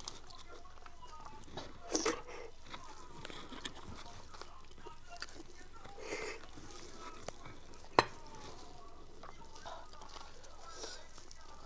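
A young woman chews and smacks her lips wetly close to a microphone.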